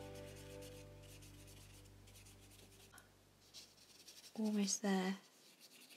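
A paintbrush strokes softly across paper.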